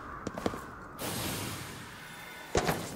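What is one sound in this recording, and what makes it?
A rushing whoosh sweeps past.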